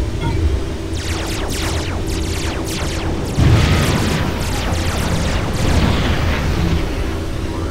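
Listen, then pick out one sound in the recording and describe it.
Laser weapons fire in rapid crackling bursts.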